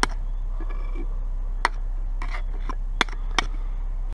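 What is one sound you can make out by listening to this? A knife scrapes against a stone.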